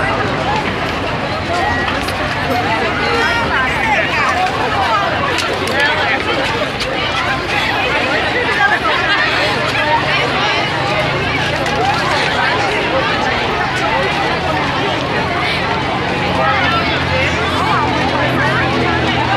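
A large crowd of young women and men chatters and shouts loudly outdoors.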